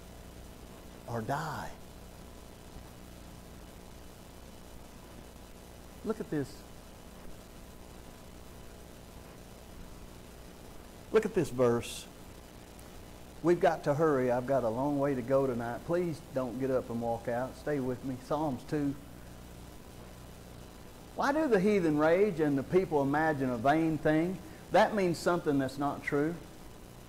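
A man speaks through a microphone in a preaching manner, with long pauses.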